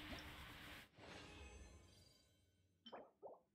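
A swelling whoosh sounds and fades away.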